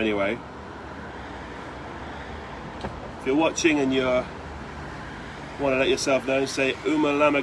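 A man speaks up close in short bursts, with pauses.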